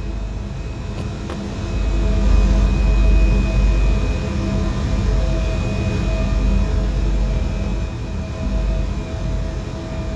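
An electric train rumbles and hums as it pulls in close by.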